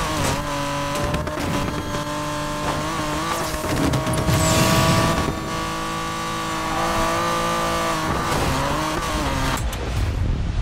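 A car engine roars at high revs as it races.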